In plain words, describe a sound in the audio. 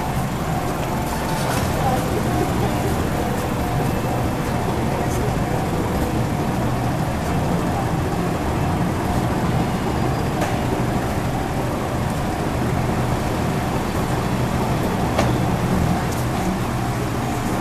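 Car engines hum as traffic idles and moves along a street.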